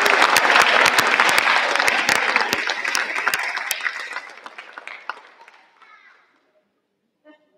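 An audience applauds in a large hall, then the clapping fades away.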